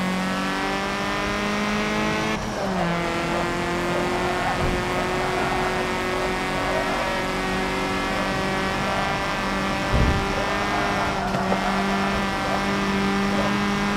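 A race car engine roars at high revs, dropping in pitch with a gear change and then climbing steadily.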